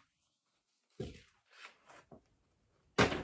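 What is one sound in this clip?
Paper crinkles as a young woman handles a paper bag.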